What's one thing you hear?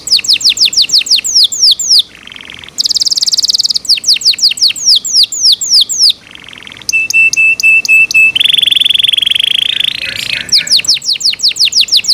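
A canary sings close by in fast, varied trills and rolling warbles.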